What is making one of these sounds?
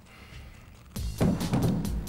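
Paper pages rustle as a book is flipped open.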